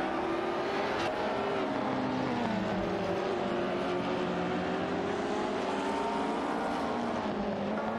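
Racing car engines roar and whine, shifting pitch as they speed along.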